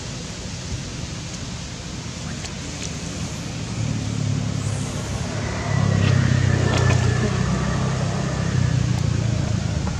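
A monkey chews food with soft smacking.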